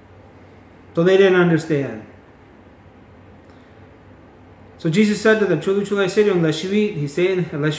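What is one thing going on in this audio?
A middle-aged man speaks calmly and close to a microphone, pausing between phrases.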